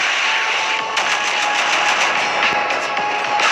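Cannon fire rattles in rapid bursts.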